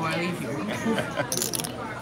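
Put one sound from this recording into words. Playing cards slide and tap on a felt table.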